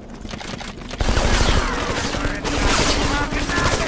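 Gunfire bursts loudly nearby.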